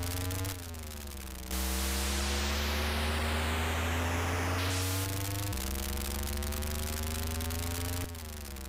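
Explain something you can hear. A video game car engine buzzes and changes pitch as it revs.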